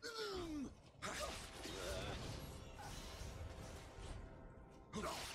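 Fiery bursts roar and crackle.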